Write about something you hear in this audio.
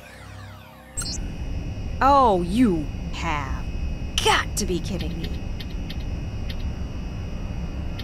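An electronic terminal hums and beeps.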